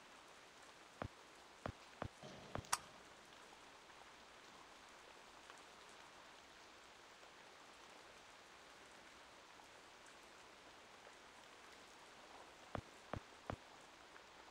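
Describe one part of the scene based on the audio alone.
Footsteps tap on wet pavement.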